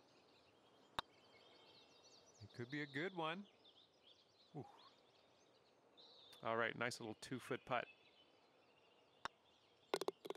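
A golf putter taps a ball softly.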